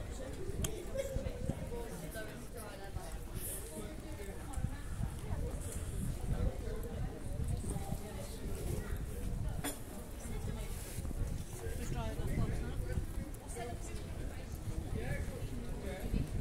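Footsteps tap on paving close by.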